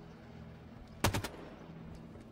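A gun fires a short burst of loud shots.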